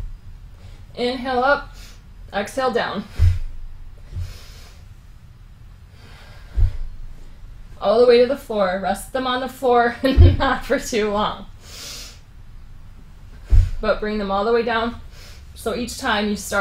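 A woman speaks calmly, giving instructions nearby.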